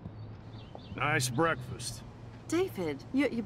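A woman speaks sharply nearby.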